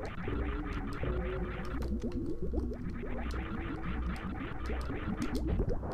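A spinning jump whirrs.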